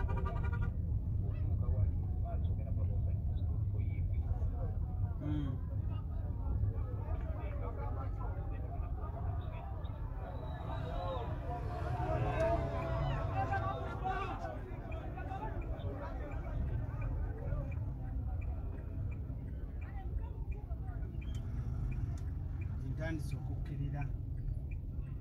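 A crowd outside chatters and shouts, heard through the car window.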